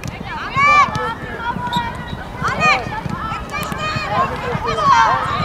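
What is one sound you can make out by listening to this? Young women shout to each other across an open field.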